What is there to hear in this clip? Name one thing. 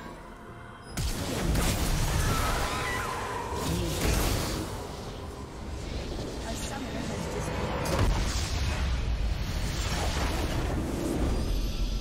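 Game spell effects and combat sounds clash and burst loudly.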